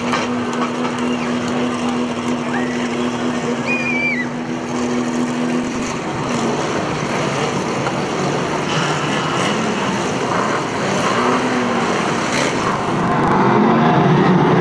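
Car engines roar and rev loudly on a dirt track.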